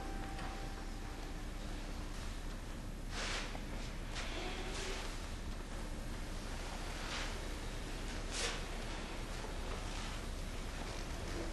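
Footsteps walk slowly across a floor.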